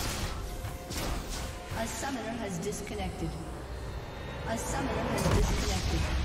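Game spell effects crackle and boom in a fight.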